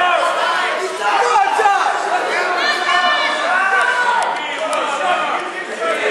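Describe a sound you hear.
A crowd of spectators shouts in an echoing hall.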